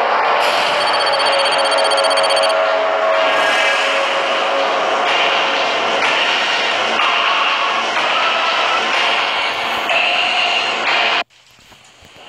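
Lively electronic game music plays loudly, then cuts off abruptly.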